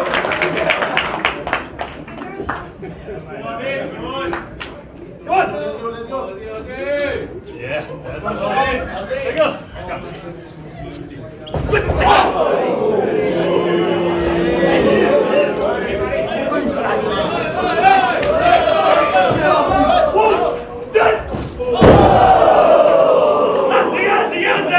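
A crowd cheers and chants.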